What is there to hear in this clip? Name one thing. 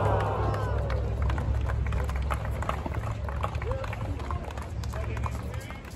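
Tennis balls are struck with sharp pops.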